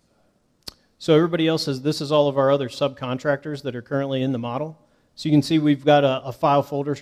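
A young man speaks calmly into a headset microphone, close and clear.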